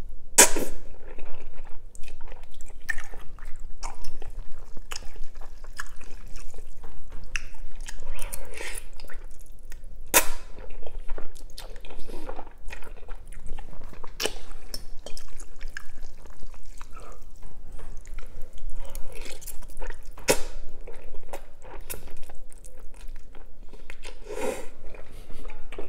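A man slurps noodles loudly, close up.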